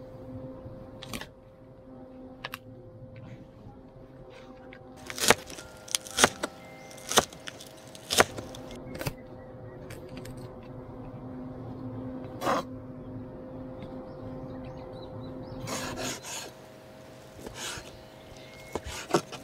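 A knife chops on a wooden cutting board.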